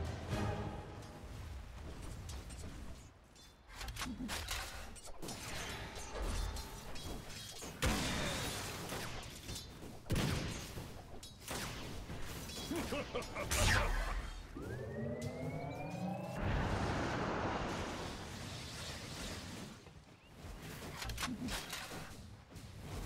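Weapons clash and strike during the fight.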